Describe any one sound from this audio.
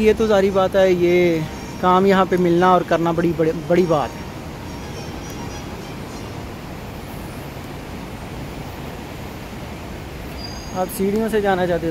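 An escalator hums steadily as it runs.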